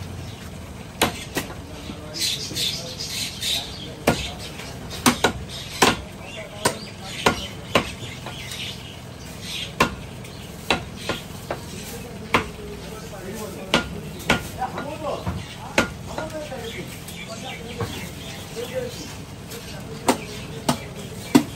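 A butcher's blade chops beef on a wooden block with sharp knocks.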